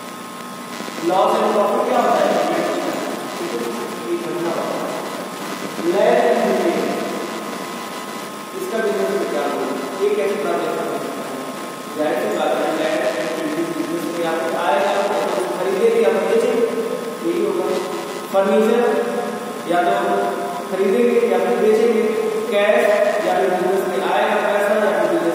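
A man lectures with animation, close to a microphone.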